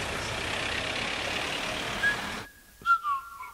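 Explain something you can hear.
Car engines hum in steady street traffic.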